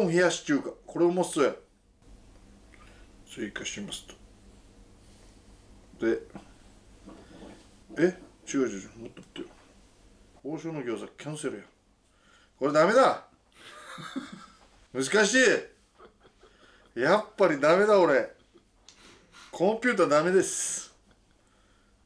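A man talks in short, animated bursts, close by.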